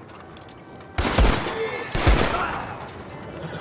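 Gunshots ring out loudly with a short echo.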